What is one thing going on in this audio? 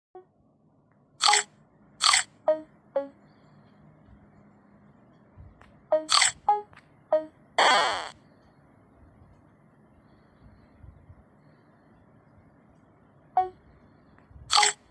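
Short bright game chimes ring out now and then.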